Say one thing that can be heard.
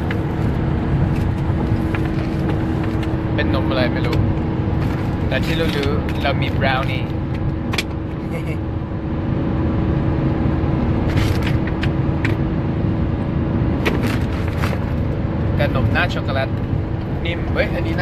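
A vehicle engine rumbles steadily from inside a moving vehicle.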